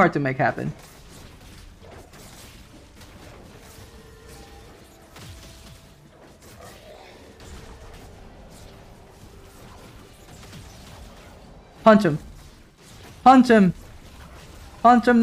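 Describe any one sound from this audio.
Faint clashing and spell effects sound from a video game battle.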